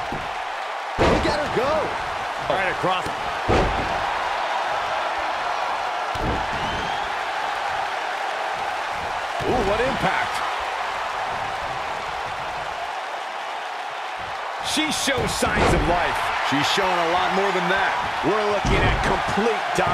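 Heavy thuds of bodies slamming onto a wrestling mat ring out.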